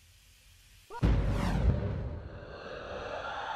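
An explosion booms and rumbles loudly.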